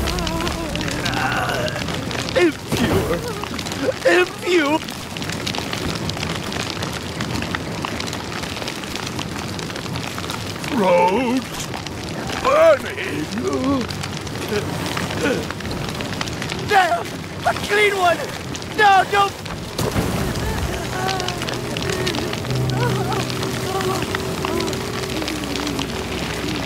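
A bonfire crackles and roars.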